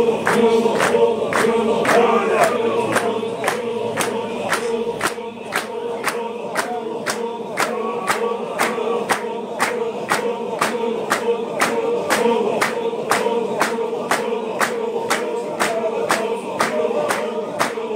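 Many feet stomp on the ground in a fast, even beat.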